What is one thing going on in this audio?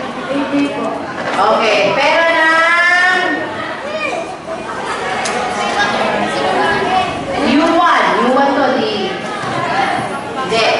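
Children and adults chatter and talk over one another nearby in an echoing room.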